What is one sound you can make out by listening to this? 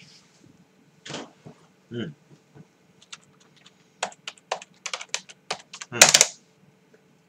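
Fingers type on a laptop keyboard.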